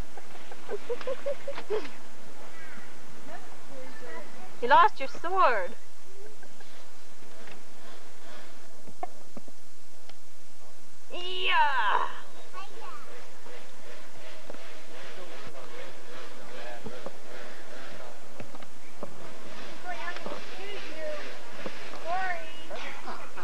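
Young children shout and call out outdoors.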